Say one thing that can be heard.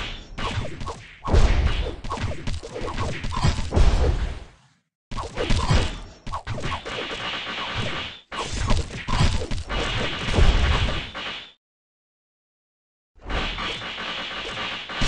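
Sword slashes and impact effects clash rapidly in a game battle.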